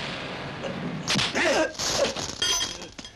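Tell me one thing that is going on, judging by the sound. A kick lands on a body with a thud.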